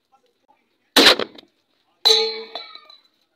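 A sharp bang goes off as a metal cup blasts off a plastic bottle.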